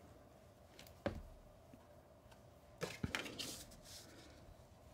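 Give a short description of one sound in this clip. Paper rustles and taps as it is handled.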